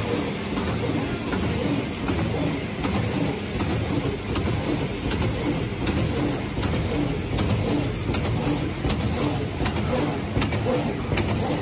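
A machine clicks sharply in a regular rhythm.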